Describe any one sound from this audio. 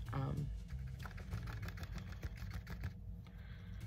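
A brush dabs and scrubs paint on paper.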